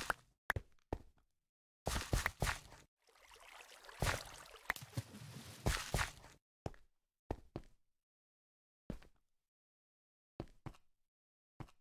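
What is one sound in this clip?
Blocks of earth crunch in short bursts as they are dug away.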